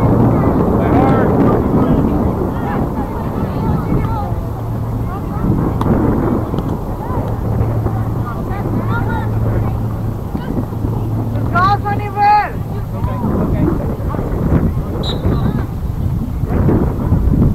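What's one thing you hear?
Spectators call out and cheer from the sideline of an open field.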